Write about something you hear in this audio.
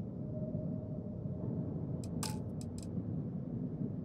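Short electronic interface clicks sound.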